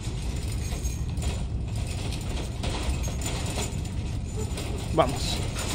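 A small cart rolls and rumbles as it is pushed along.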